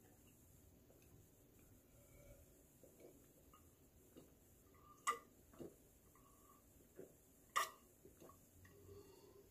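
A man gulps down a drink in loud swallows.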